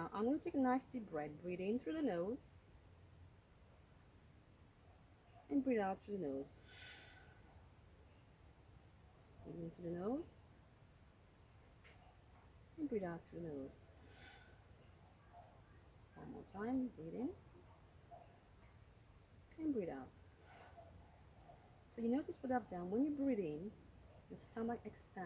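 A woman speaks slowly and calmly in short phrases, with pauses between them.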